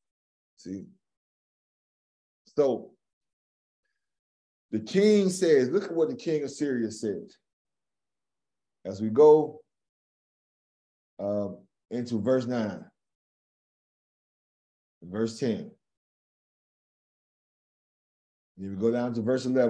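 A middle-aged man speaks with animation over an online call, pausing often.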